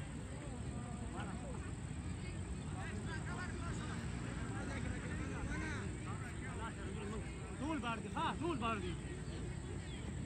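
Young men call out and talk to each other at a distance outdoors.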